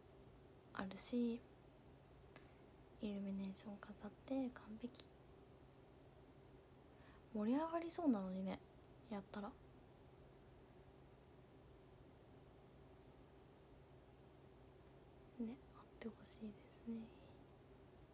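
A young woman talks calmly and softly, close by, in short bursts.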